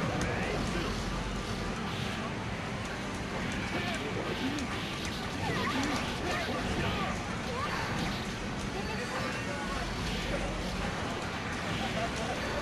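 Punches, slashes and blasts from a fighting game crash rapidly one after another.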